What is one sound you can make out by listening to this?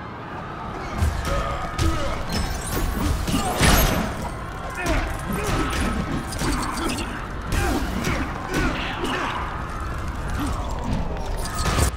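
Punches and blows land with sharp thuds in a game fight.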